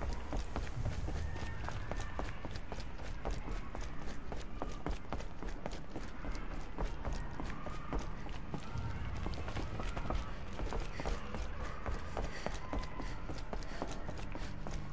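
Quick footsteps thud on wooden boards.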